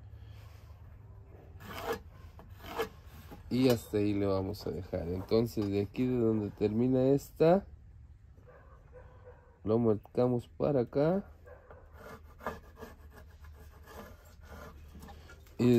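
A pencil scratches along a wooden board.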